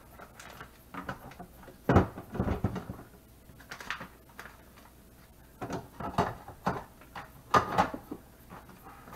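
The lid of a vacuum sealer opens and snaps shut.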